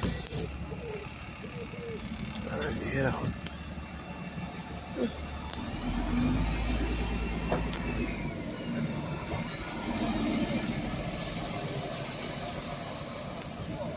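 A double-decker bus engine rumbles as the bus pulls away.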